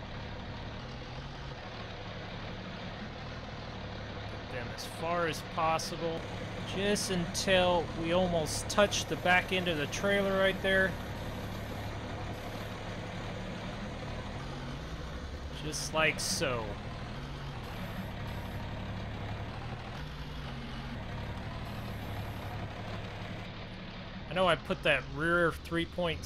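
A tractor engine chugs steadily at idle.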